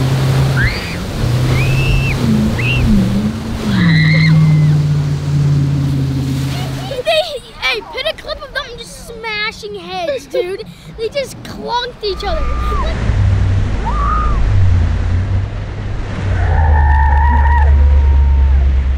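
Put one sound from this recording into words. Riders on a towed tube scream with excitement.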